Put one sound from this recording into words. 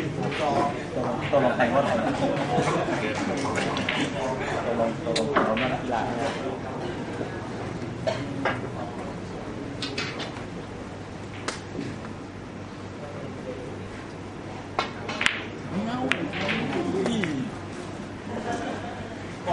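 Men talk calmly nearby.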